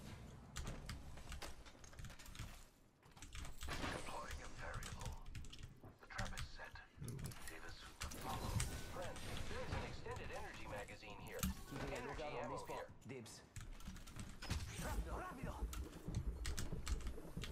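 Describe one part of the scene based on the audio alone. Clicks and short electronic chimes sound from a game.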